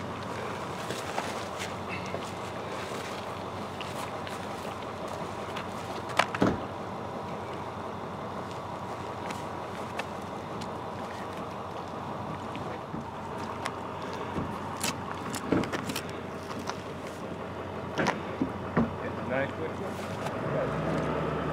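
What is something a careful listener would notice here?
Water flows and trickles steadily nearby.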